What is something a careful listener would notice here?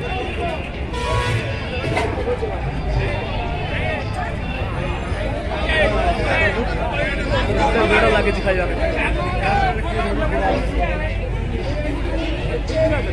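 Loud music with a heavy beat plays over loudspeakers.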